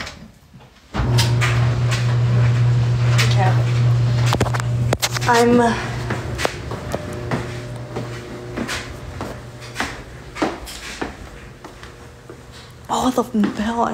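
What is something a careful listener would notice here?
A washing machine hums as it starts running.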